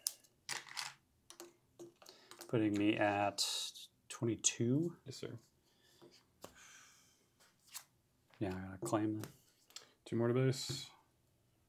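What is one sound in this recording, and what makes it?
Playing cards slap softly onto a table.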